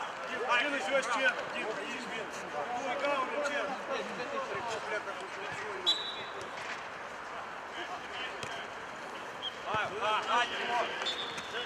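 Men shout to each other across an outdoor football pitch.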